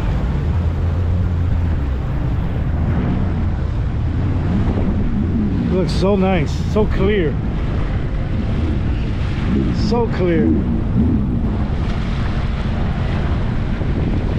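A jet ski engine hums steadily close by.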